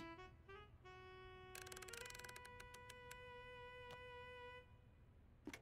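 An alarm clock rings with a run of high chiming beeps.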